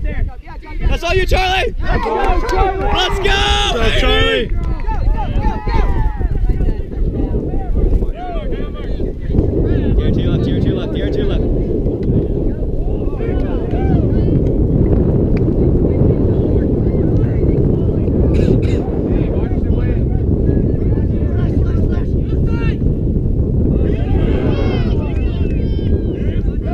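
Young men shout and call out to one another across an open field.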